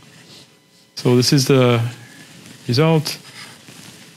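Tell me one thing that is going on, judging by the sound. A man lectures through a microphone, speaking in short bursts.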